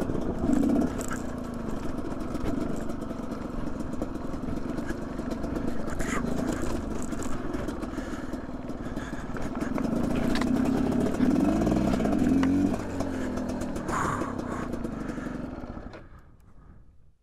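A motorbike engine revs and putters up close.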